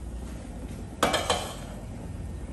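A metal pot clunks down onto a stove.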